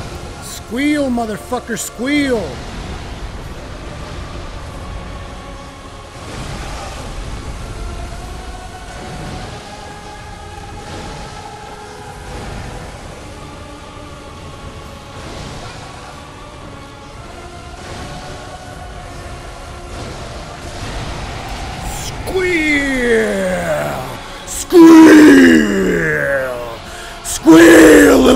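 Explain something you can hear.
A monster lets out loud, falling screeches.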